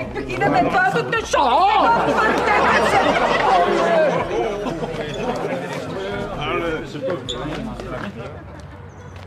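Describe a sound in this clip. A crowd of men talks and cheers loudly indoors.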